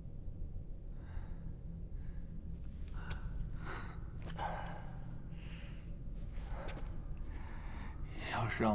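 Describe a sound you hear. A man pants heavily.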